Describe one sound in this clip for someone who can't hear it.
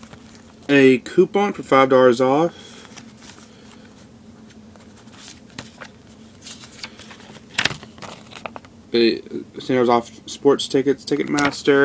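Paper inserts rustle as they are handled.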